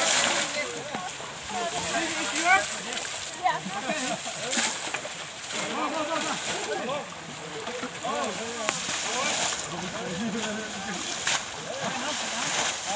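Water splashes as buckets are thrown.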